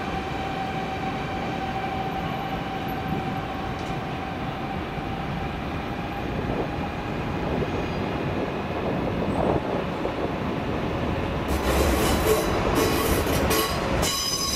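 A high-speed train rumbles slowly over the rails with a steady hum.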